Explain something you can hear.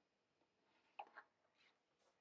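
Paper rustles as it is laid down.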